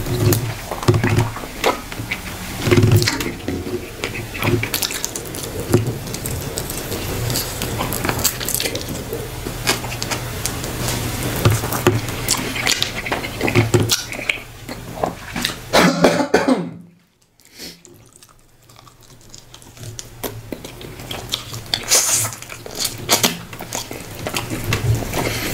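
A young man chews food noisily and smacks his lips close to a microphone.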